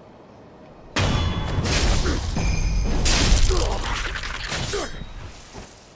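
A sword slashes and clangs.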